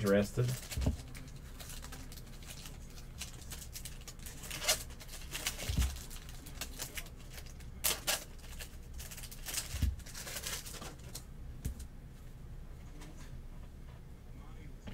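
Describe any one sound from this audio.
Cardboard trading cards rustle and shuffle between hands.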